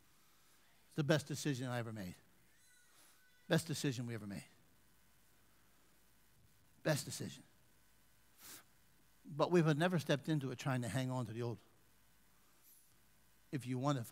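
A middle-aged man speaks in short, deliberate phrases through a headset microphone, with pauses between them.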